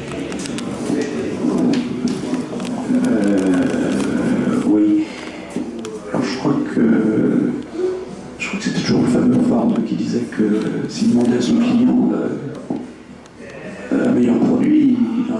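An older man speaks calmly through a microphone in a room with some echo.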